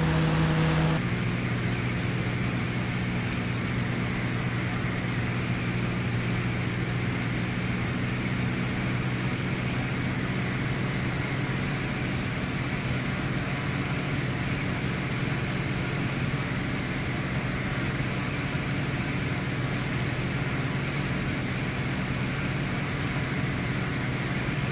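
A propeller plane's engine hums loudly inside the cabin.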